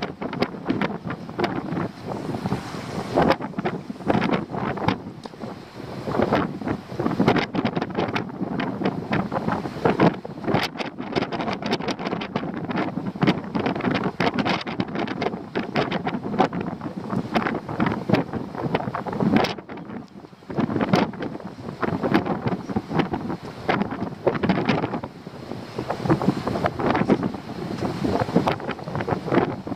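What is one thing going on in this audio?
Strong wind gusts and buffets loudly outdoors.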